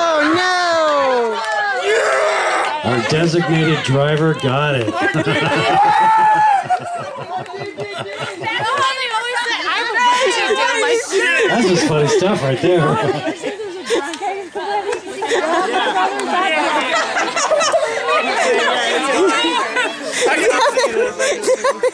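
A crowd of men and women chatters and cheers outdoors.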